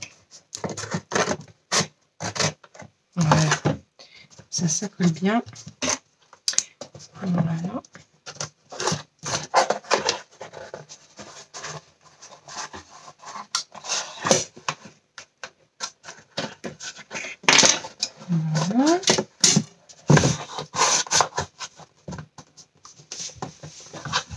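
Cardboard pieces rustle and tap against a table.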